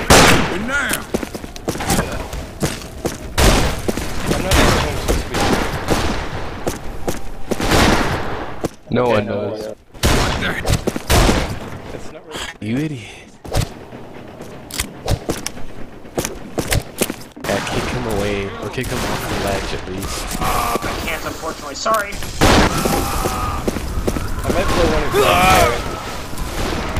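Revolver shots ring out in quick bursts.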